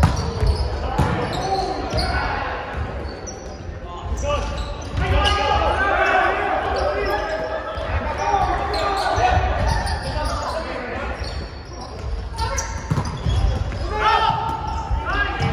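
A volleyball is hit with sharp slaps that echo in a large hall.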